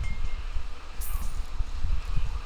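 A short bright chime sounds.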